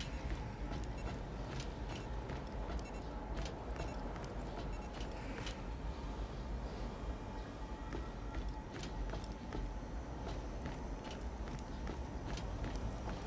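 Footsteps clank steadily on a metal floor.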